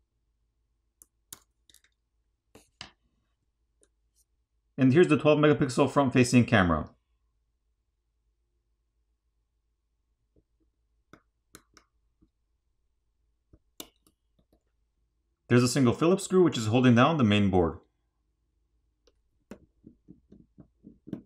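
Small plastic parts click softly as a pry tool works inside a phone.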